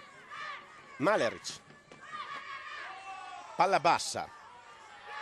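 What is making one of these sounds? Spectators in the stands cheer and shout loudly in bursts.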